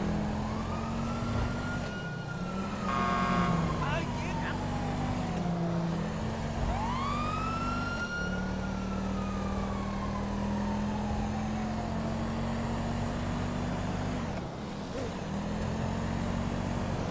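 A car engine roars steadily, shifting gears as it speeds along.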